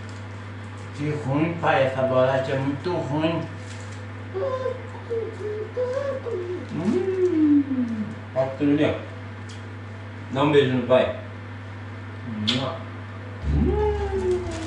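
A young man talks playfully and close by.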